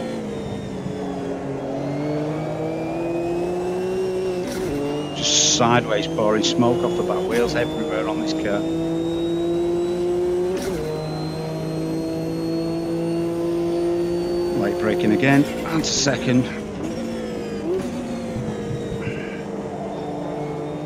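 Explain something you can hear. A racing car engine roars steadily, rising and falling in pitch as it changes gear.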